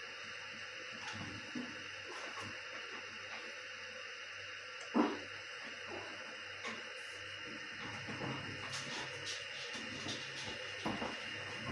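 A metal kettle ticks and pops now and then as it warms, more often toward the end.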